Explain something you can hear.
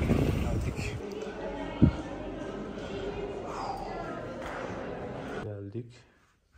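A crowd of men and women chatter quietly in a large echoing hall.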